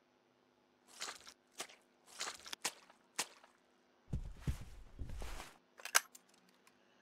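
Footsteps crunch over broken glass on a hard floor.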